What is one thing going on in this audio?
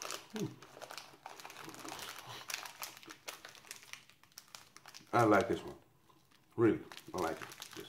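Plastic wrappers crinkle and rustle as hands handle them.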